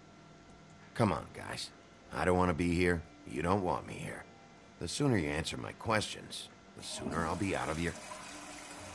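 A man speaks in a low, weary voice, pleading.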